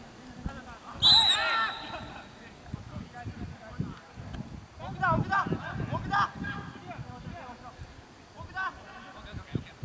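Young men shout to each other on an open field, some distance away.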